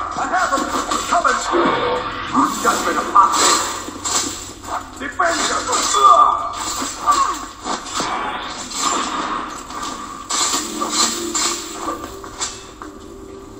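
Blows and crashes from a video game fight play through a loudspeaker.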